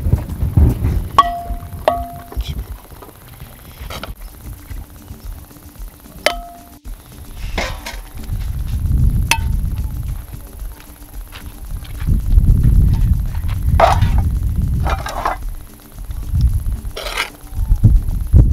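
A bowl clinks and scrapes against metal pots.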